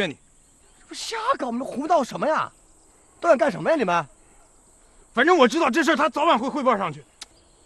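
Another young man replies in a low, firm voice.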